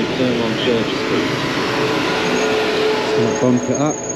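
A bus engine rumbles close by in city traffic.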